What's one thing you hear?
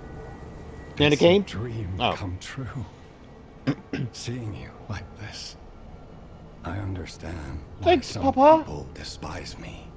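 An elderly man speaks slowly and gravely.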